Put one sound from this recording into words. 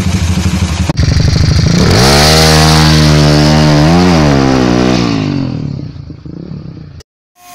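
A motorcycle roars past at speed on a road.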